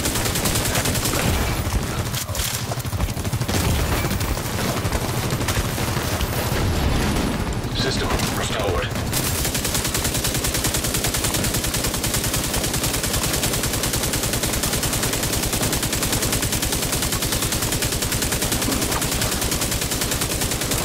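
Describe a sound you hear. Rapid gunfire rattles in a steady stream.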